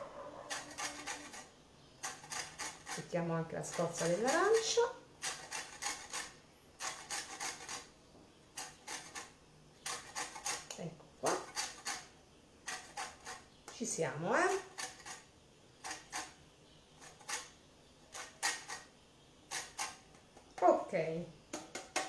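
Orange peel scrapes rhythmically against a metal grater.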